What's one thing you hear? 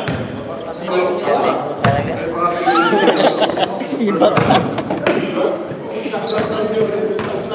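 Several young men talk and call out in a large echoing gym.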